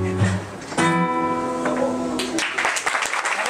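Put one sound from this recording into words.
An acoustic guitar is strummed close by.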